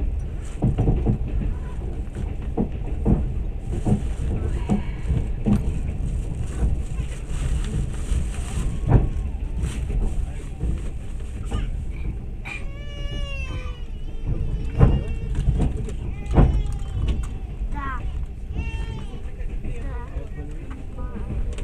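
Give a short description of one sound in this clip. Train wheels clatter and knock over rail joints.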